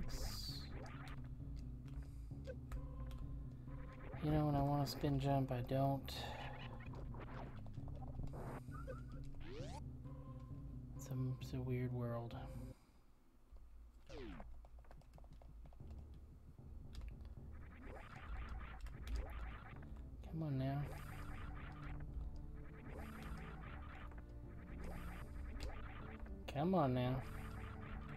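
Video game music and sound effects play steadily.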